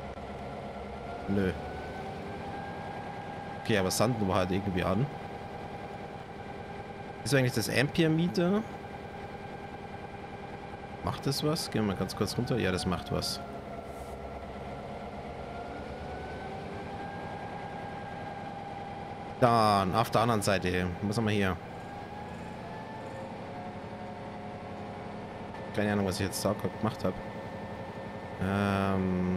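A locomotive engine drones steadily, its pitch rising and falling slightly.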